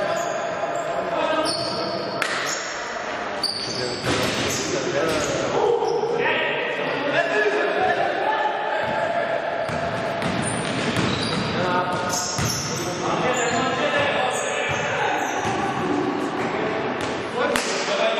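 Players shout to each other in a large echoing hall.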